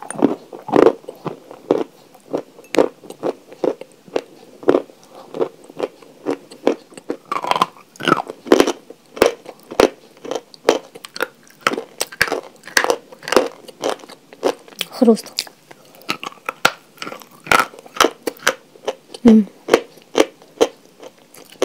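A young woman crunches loudly on hard chalk close to a microphone.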